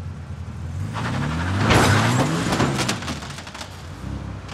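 A car engine revs up loudly.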